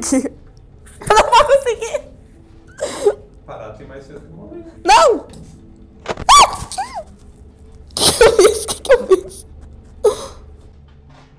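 A teenage girl laughs nervously close by.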